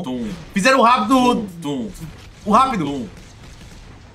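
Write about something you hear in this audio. A young man exclaims loudly and excitedly into a microphone.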